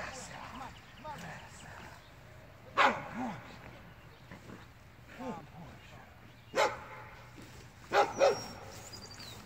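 A man gives short, loud commands nearby.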